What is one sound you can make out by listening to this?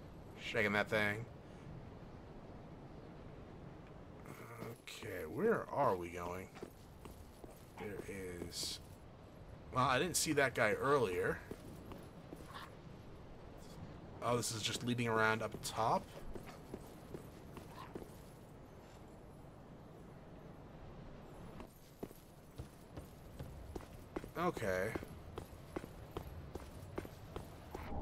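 Armoured footsteps clank on stone and roof tiles.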